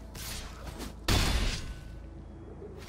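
A game sound effect whooshes and thuds as a card is played.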